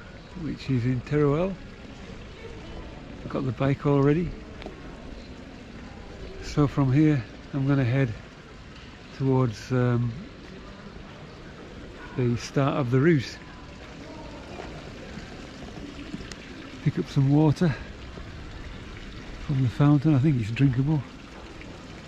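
A middle-aged man speaks calmly close to the microphone, in short phrases with pauses.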